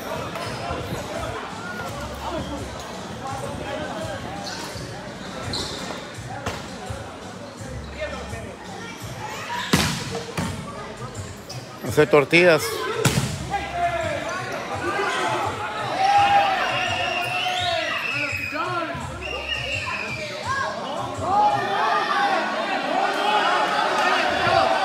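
A crowd of young men chatters and shouts in a large echoing hall.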